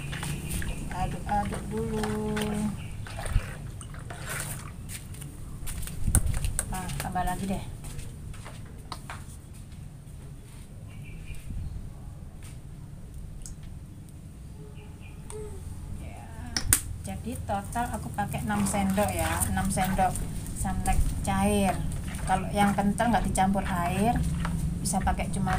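Water swishes as a hand stirs it in a plastic tub.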